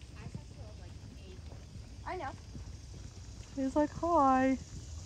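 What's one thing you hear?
A horse canters on soft sand with dull, rhythmic hoofbeats.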